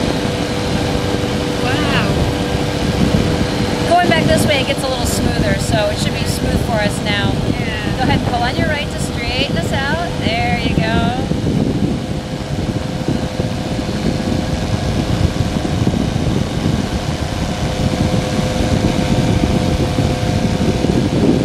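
A small aircraft engine drones steadily.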